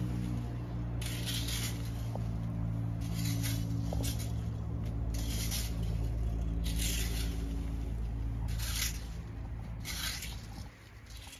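A hoe scrapes and chops into dry soil in repeated strokes.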